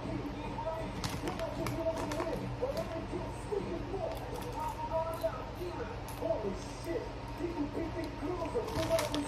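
A snack bag crinkles and rustles.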